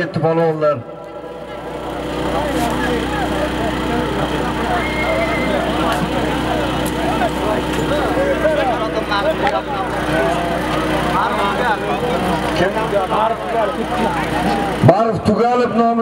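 A crowd murmurs and calls out.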